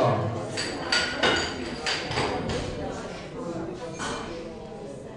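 Metal weight plates clank as they are slid onto a barbell.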